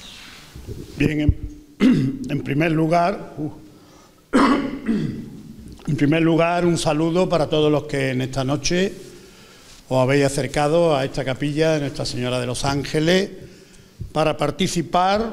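An older man speaks calmly through a microphone in an echoing hall.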